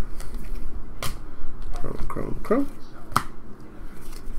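Trading cards flick and slap softly as they are shuffled by hand.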